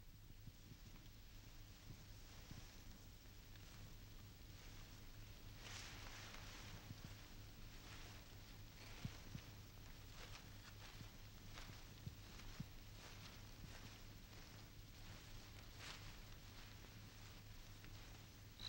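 Tall reeds rustle in the wind.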